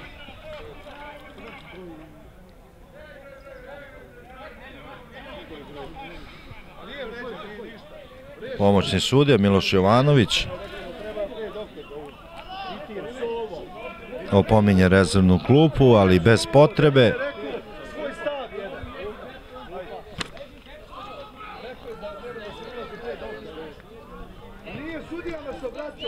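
Several men talk and argue nearby.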